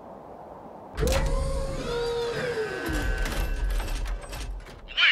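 Hydraulic launch rails whine and clank as they rise.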